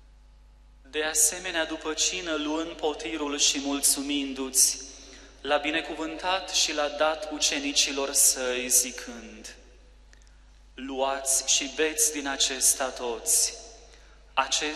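A man chants in a steady singing voice through a microphone.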